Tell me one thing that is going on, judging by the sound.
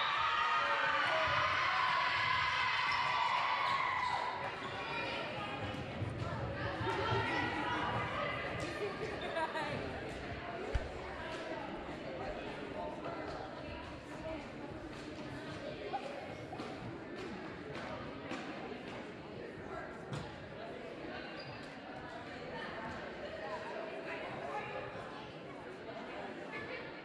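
Many young people chatter in a large echoing hall.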